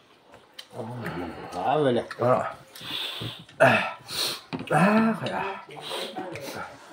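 Young men laugh nearby.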